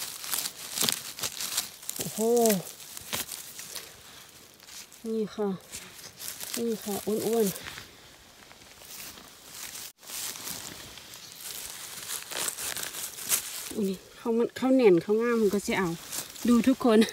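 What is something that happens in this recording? Dry leaves and moss rustle and crackle close by as mushrooms are pulled from the ground.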